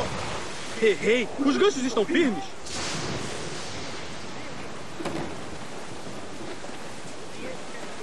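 A stormy sea roars as waves crash around a sailing ship.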